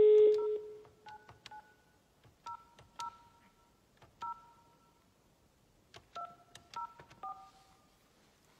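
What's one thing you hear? Telephone keys beep in short tones as a number is dialed.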